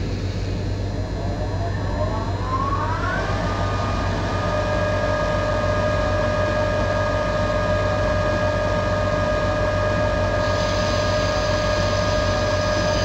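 An electric train motor whines, rising in pitch and then holding steady.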